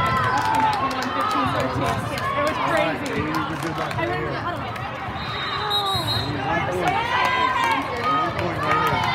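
Many young girls' voices chatter and cheer throughout a large echoing hall.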